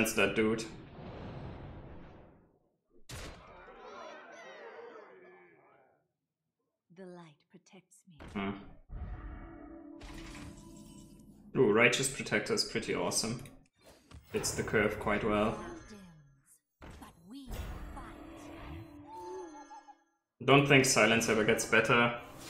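Game sound effects whoosh and chime.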